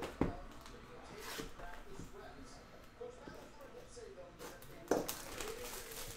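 Plastic wrap crinkles and tears as hands open a box.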